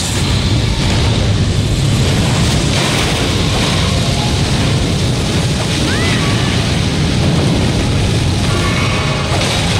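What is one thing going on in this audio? Flames roar and crackle in bursts.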